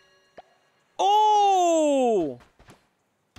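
A man makes a long, falling exclamation close to a microphone.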